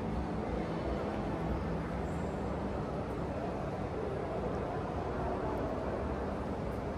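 An escalator runs with a low, steady hum in a large echoing hall.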